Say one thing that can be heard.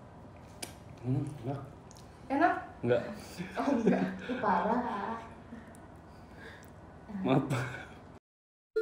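Young people talk and laugh close by.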